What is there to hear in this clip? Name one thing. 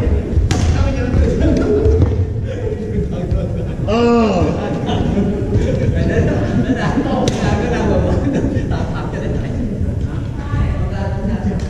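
Young men talk and call out across an echoing gym.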